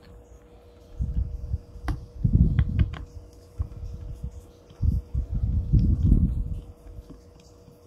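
Plastic parts scrape and knock together as a hand handles them.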